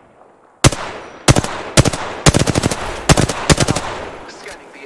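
Gunshots fire in quick bursts, loud and sharp.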